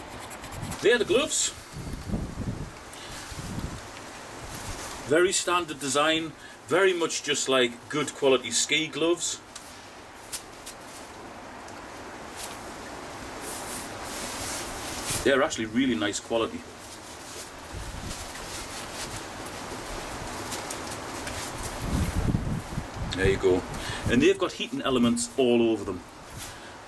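Gloves rustle and flap as a man handles them.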